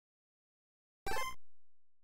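A short electronic beep sounds from a video game menu.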